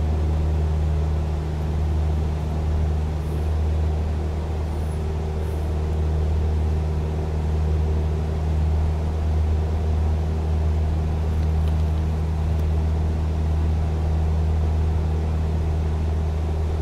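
A small propeller plane's engine drones steadily.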